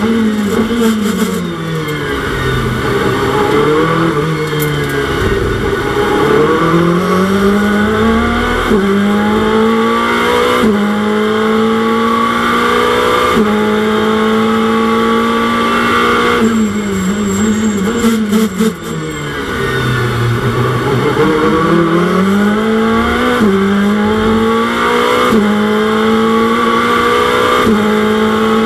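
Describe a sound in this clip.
A racing car engine roars loudly, revving up through the gears and dropping as it slows.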